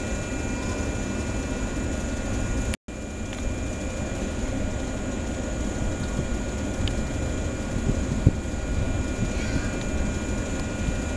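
A diesel train engine idles with a steady low rumble nearby.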